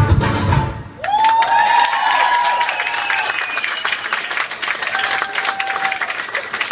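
An audience applauds nearby.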